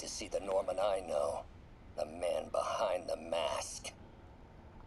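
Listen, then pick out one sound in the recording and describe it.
A man's voice plays from a small voice recorder, heard through its speaker.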